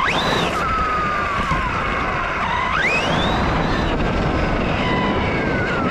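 RC truck tyres roll on asphalt.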